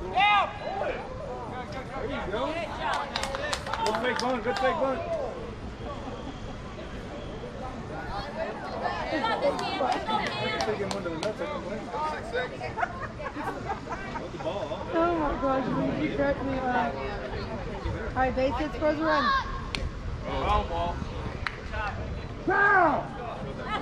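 Young players shout and cheer outdoors across an open field.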